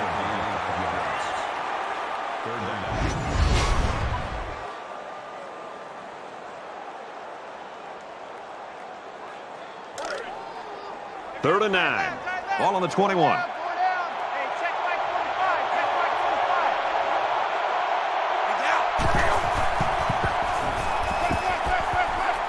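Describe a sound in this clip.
A large crowd roars and cheers steadily in a big stadium.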